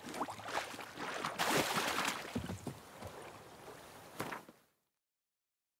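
Footsteps slosh through shallow water.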